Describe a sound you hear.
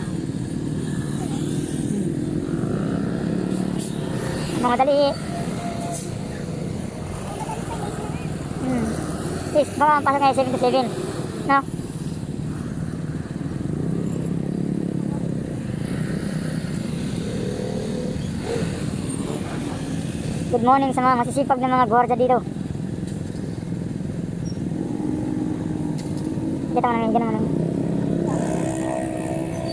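A motor scooter engine hums steadily nearby.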